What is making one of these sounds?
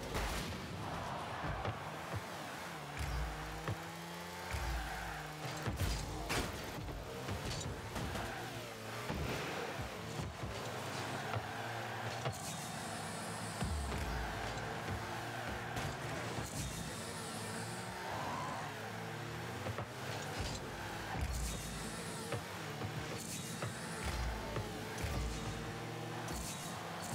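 Game car engines hum and whine steadily.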